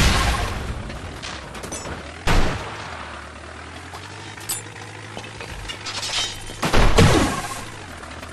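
A small cartoon car engine hums steadily.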